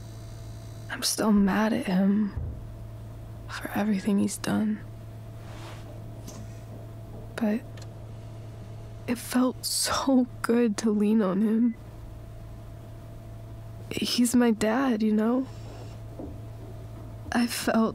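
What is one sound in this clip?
A young woman speaks softly and wistfully.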